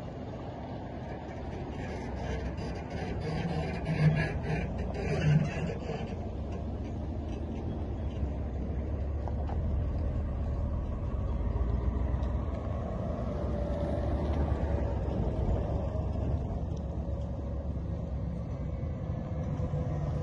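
Tyres crunch on a dirt road.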